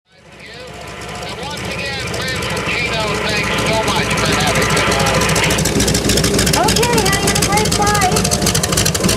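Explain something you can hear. A propeller plane's engine idles close by with a rapid, throbbing rumble that grows louder.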